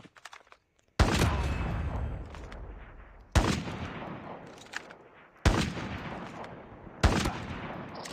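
A rifle fires loud single shots that ring out and fade.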